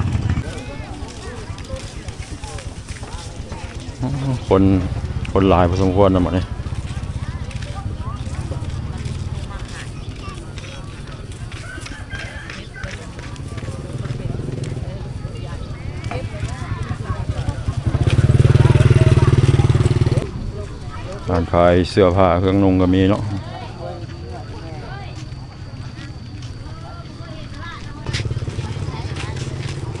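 Men and women chat and call out in the background outdoors.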